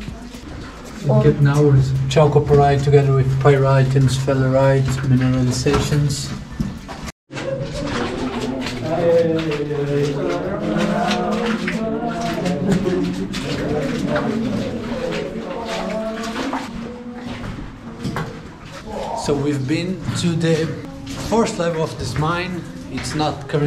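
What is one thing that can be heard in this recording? A young man talks calmly and close to the microphone.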